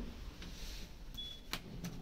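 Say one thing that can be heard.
A finger presses an elevator button with a soft click.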